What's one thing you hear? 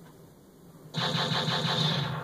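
Music plays from a television speaker.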